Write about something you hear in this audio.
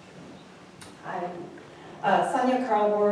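A middle-aged woman speaks cheerfully into a microphone.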